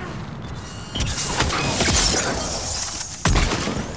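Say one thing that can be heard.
Rapid gunfire rattles in a burst.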